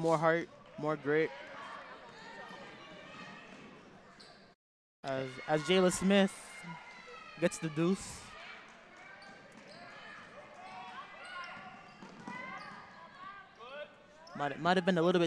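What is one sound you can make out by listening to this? Sneakers squeak on a hardwood court.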